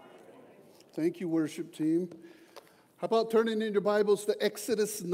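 A man speaks calmly through a microphone in a large room with a slight echo.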